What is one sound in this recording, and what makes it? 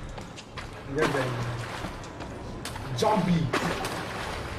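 A young man exclaims into a close microphone.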